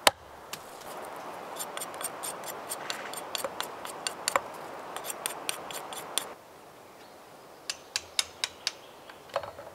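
A knife scrapes and shaves wood with quick little clicks.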